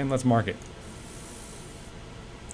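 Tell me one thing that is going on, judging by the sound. A laser marker hisses faintly while engraving.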